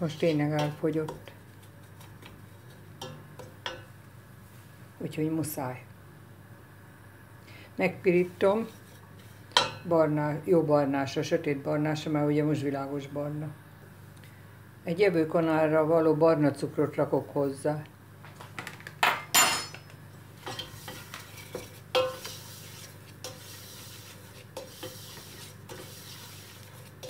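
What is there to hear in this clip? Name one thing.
A wooden spoon scrapes and stirs grains in a metal pot.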